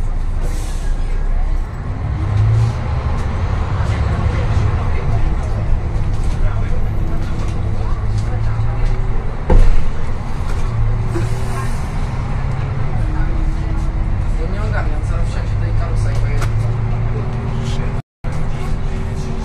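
The bus body rattles and creaks as it drives.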